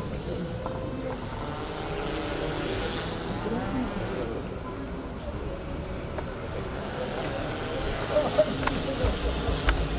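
A crowd of men and women murmurs and chats nearby outdoors.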